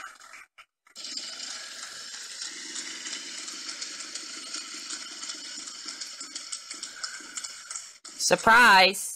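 A prize wheel in a computer game ticks rapidly as it spins, then slows.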